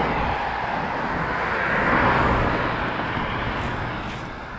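A car drives past on a road nearby.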